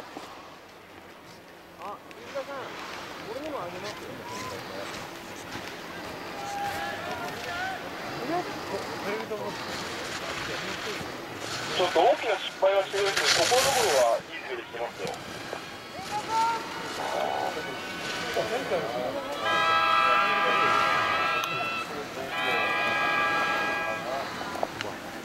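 Skis scrape and hiss across hard snow.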